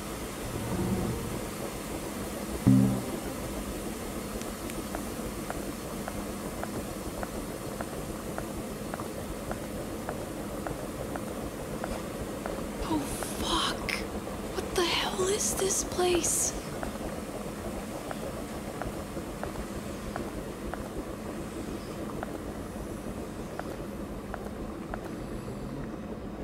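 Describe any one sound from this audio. Footsteps thud steadily across a hard floor.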